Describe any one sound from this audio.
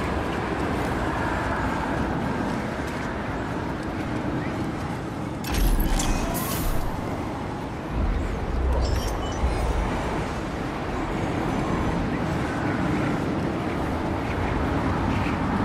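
Boots scrape and shuffle on rock.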